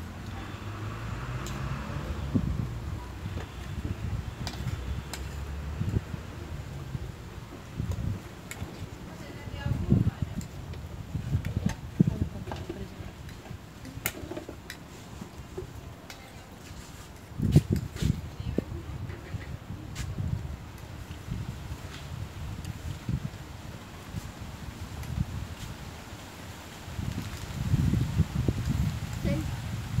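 Forks and spoons clink and scrape on plates.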